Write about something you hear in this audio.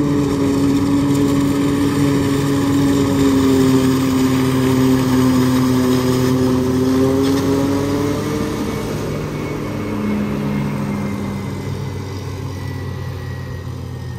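A forage harvester's engine roars loudly close by.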